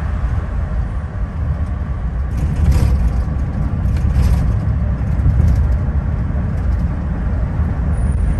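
A car drives fast along a highway, its engine and tyres rumbling low and steady.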